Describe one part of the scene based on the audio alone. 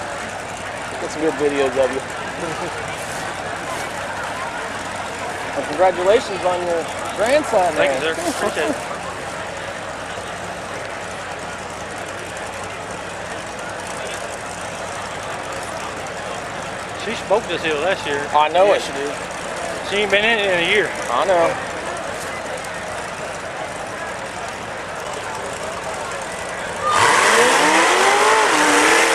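An engine revs loudly in bursts, rising and falling in pitch.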